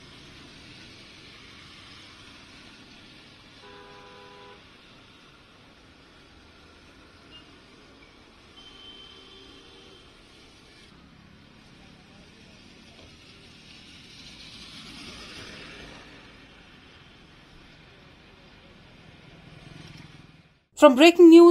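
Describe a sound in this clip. Cars and motorbikes drive through water on a wet road with a steady splashing hiss.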